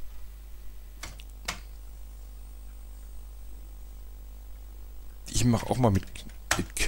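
Computer keys click as they are typed.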